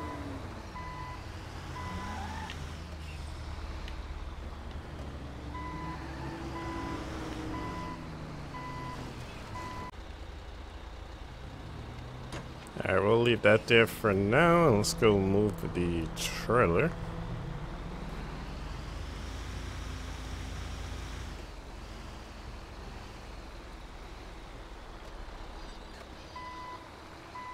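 A truck's reversing alarm beeps in a steady rhythm.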